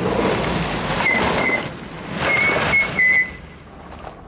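Car brakes squeal briefly.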